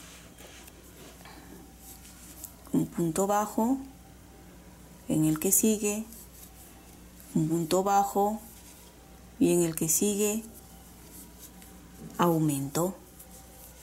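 A crochet hook pulls yarn with a soft rustle.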